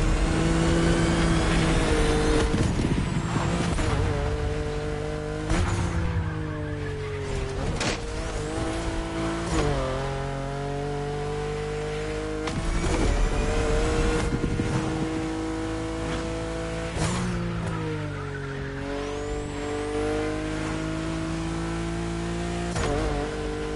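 Exhaust pops and crackles from a racing car.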